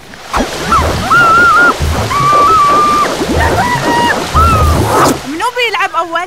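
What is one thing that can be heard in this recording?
Water rushes and splashes down a slide.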